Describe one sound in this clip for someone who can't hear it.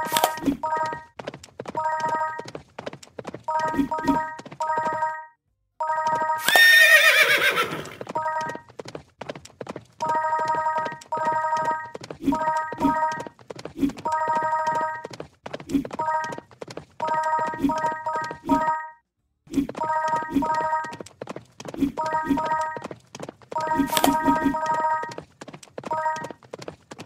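Bright chimes ring again and again as coins are picked up.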